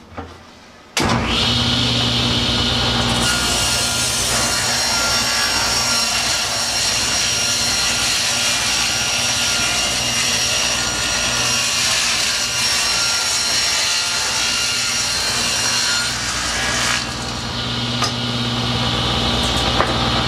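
A table saw starts up and runs with a loud steady whine.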